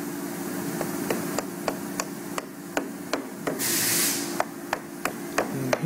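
A rubber mallet taps on a wooden box in quick knocks.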